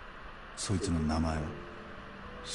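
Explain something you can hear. A young man asks a short question calmly.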